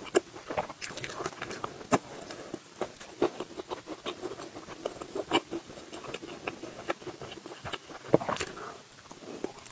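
Crispy crust crunches as a young woman bites into food.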